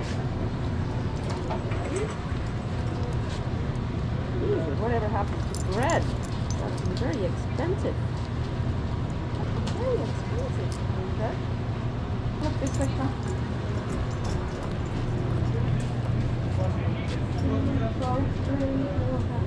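A shopping cart rattles and rumbles as it rolls along.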